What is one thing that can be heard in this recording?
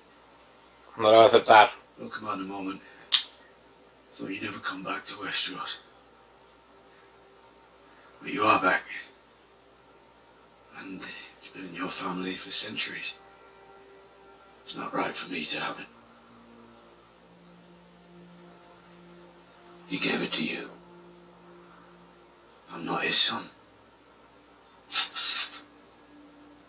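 Men talk in low, calm voices from a show playing through a speaker, in short bursts with pauses between them.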